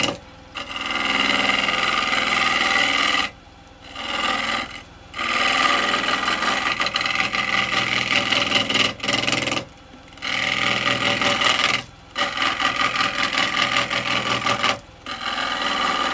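A gouge scrapes and hisses against spinning wood on a lathe, in bursts.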